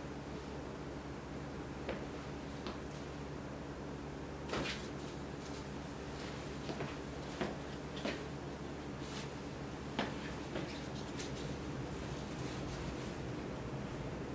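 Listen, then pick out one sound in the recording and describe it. A shirt's fabric rustles as a man moves and turns.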